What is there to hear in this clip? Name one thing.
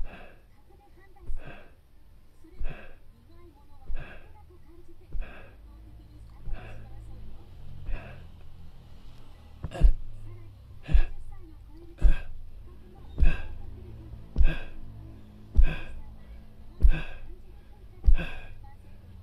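A man breathes out hard with effort in a steady rhythm, about once a second.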